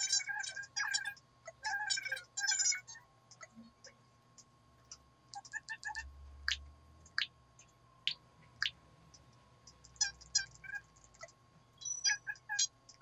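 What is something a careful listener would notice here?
A handheld game console plays quick, chirpy babbling sounds through its small speaker.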